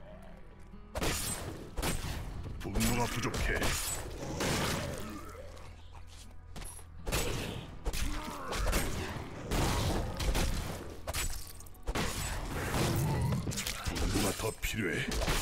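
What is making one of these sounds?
Weapons strike and slash in a fast fight.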